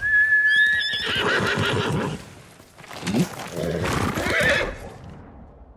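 A horse neighs loudly.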